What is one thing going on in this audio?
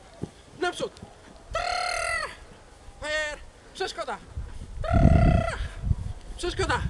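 A man calls out short, loud commands outdoors.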